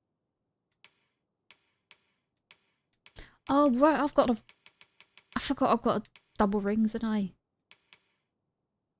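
Short, soft menu clicks tick now and then.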